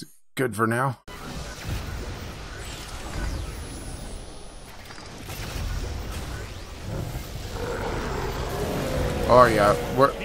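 Energy beams crackle and roar in bursts.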